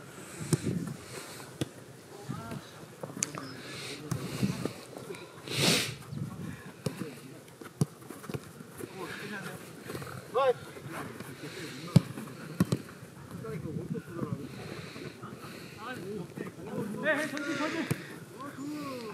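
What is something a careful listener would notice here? Players kick a football with sharp thuds outdoors.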